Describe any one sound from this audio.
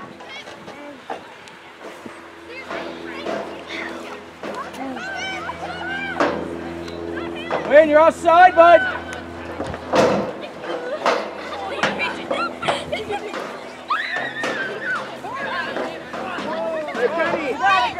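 Teenage girls shout and call out to each other across an open field.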